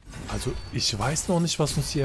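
A weapon strikes a creature.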